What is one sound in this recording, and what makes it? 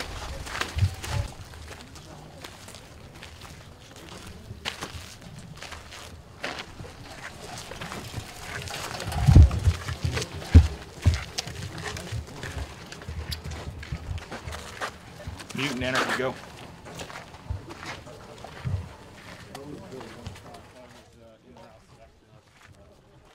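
Boots crunch on dry dirt as soldiers walk.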